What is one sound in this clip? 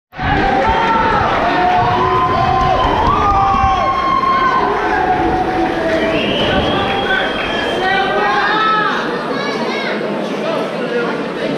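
A crowd of spectators shouts and calls out in an echoing hall.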